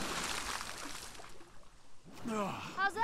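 Water rushes and splashes loudly nearby.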